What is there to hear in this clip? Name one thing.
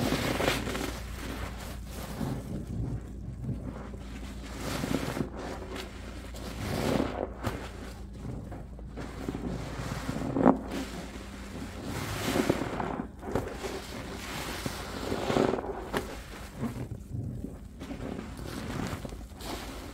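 Wet sponges squish and squelch in thick soapy foam.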